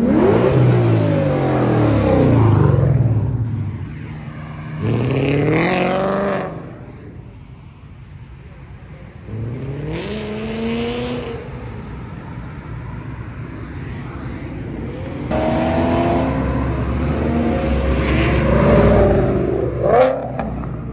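Loud sports car engines roar and rev as cars accelerate past, one after another.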